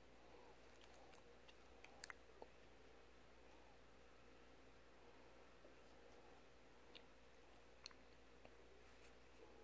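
A parrot crunches and nibbles on a piece of food.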